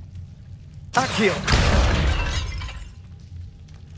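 A magical blast whooshes and crackles loudly.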